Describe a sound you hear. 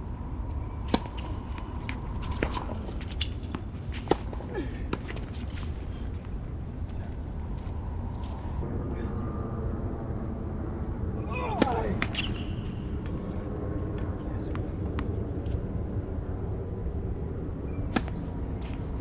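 Tennis rackets strike a ball with sharp pops in the open air.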